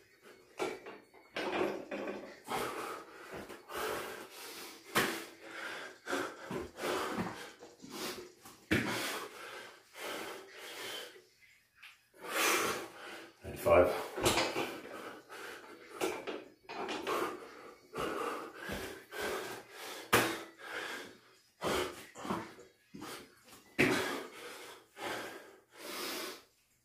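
A man talks nearby, breathless and animated.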